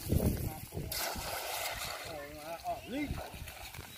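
A cast net splashes into the water.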